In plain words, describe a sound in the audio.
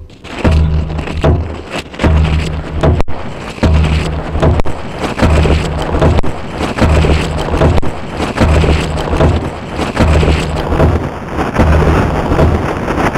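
Dry leaves crackle and rustle loudly under a hand.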